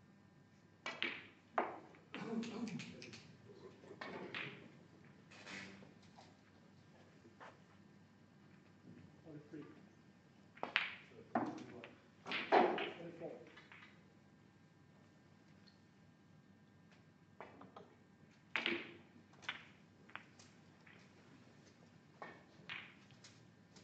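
A cue tip strikes a snooker ball.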